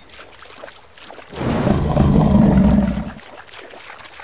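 Water splashes as a large animal swims.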